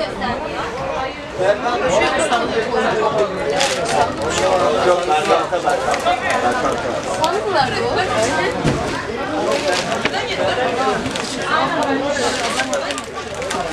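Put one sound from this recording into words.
Several men argue loudly outdoors, close by.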